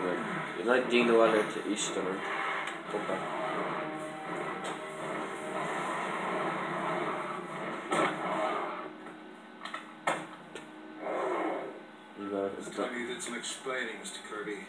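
Game sounds play from a television speaker.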